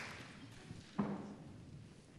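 A piano bench thuds as a man sits down.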